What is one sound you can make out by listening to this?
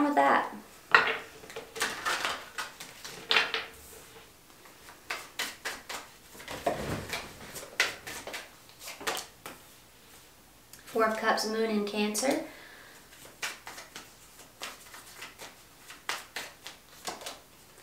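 Cards are shuffled with quick riffling taps.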